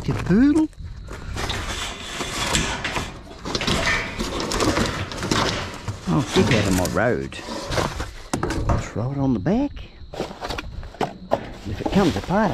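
Metal rods and a wire frame clatter against each other.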